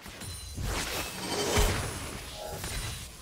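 Electric magic crackles and zaps in a burst.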